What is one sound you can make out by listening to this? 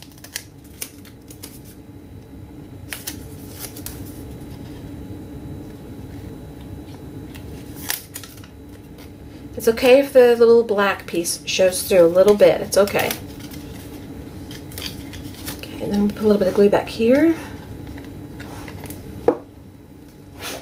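Paper rustles and crinkles in someone's hands.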